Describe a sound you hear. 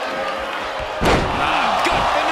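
A body slams hard onto the ring mat.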